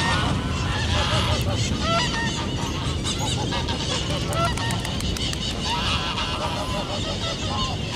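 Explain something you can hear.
A goose flaps its wings and splashes on water.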